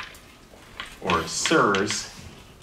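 A man speaks in a lecturing voice, close by.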